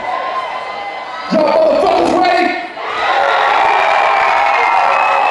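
Loud music plays through speakers in a large echoing hall.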